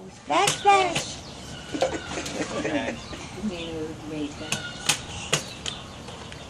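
A baby slaps a plastic tray with open hands.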